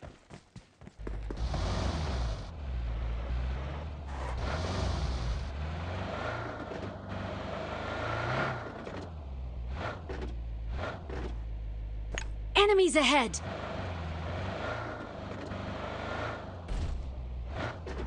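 A car engine hums and revs as it drives over rough ground.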